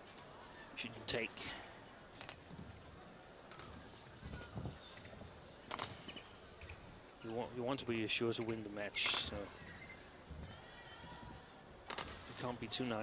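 Badminton rackets strike a shuttlecock with sharp, quick pops in an echoing hall.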